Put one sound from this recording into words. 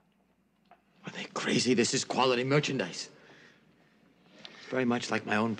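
An elderly man speaks with strain and emotion, close by.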